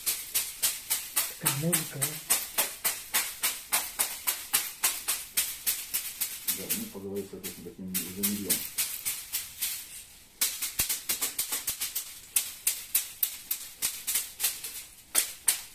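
A broom of twigs slaps rapidly against a person's back.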